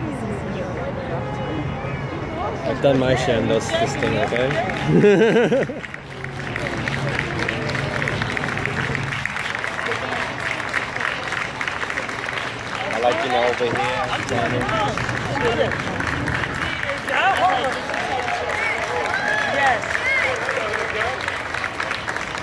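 A crowd of people chatters along a street outdoors.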